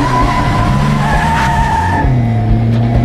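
Tyres squeal on pavement as a car turns sharply.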